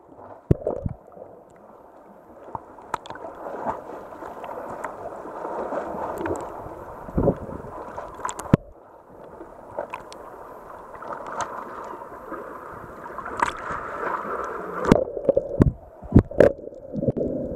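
Water splashes and laps close by at the surface.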